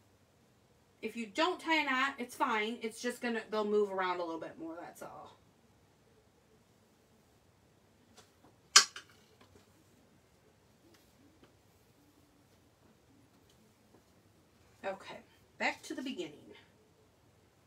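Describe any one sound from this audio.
A woman talks calmly and close by.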